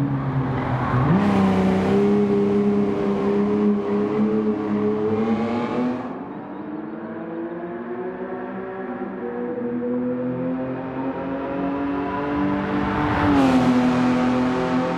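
A car passes close by with a loud whoosh.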